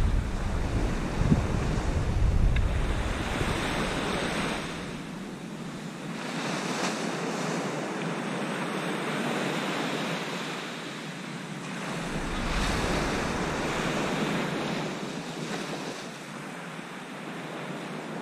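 Small waves break and wash onto a sandy beach.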